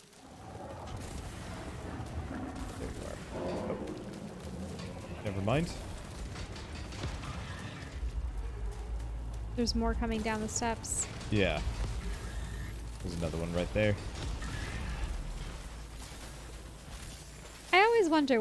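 Energy weapons fire in short bursts.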